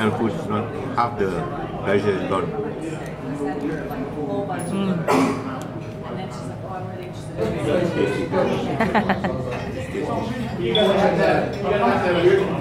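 An elderly man talks calmly nearby.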